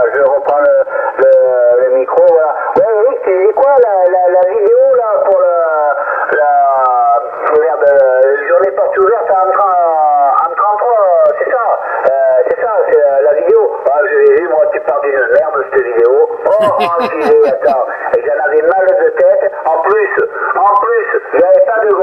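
A man speaks over a radio, heard through a small crackly loudspeaker.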